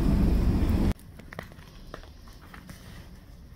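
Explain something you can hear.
Footsteps crunch on icy snow.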